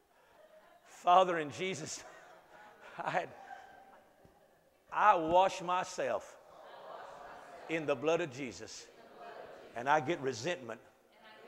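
A man speaks with animation in a large echoing room.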